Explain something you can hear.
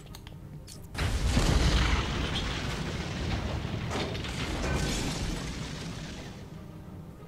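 An explosion bursts with a loud roar and slowly rumbles away.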